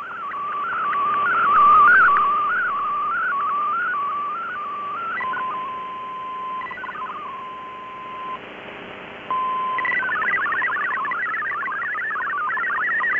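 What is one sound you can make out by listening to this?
Radio static hisses steadily from a receiver.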